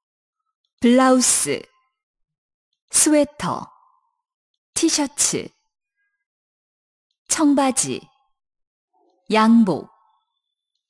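A young man speaks single words slowly and clearly into a microphone, pausing between them.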